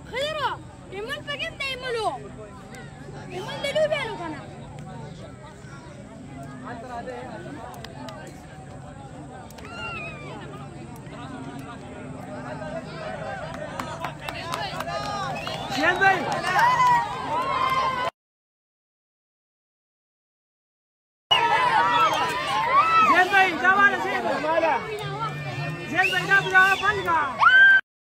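A crowd of young men cheer and shout excitedly outdoors.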